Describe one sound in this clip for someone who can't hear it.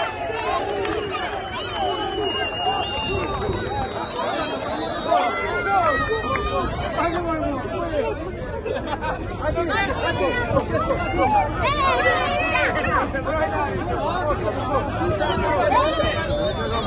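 Many men shout and talk excitedly over one another close by.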